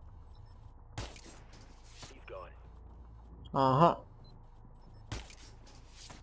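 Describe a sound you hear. A silenced rifle fires single shots.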